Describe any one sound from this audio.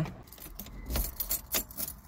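A car key turns in the ignition with a click.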